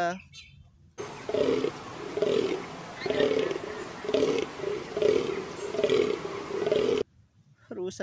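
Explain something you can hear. A deer stag groans loudly over and over.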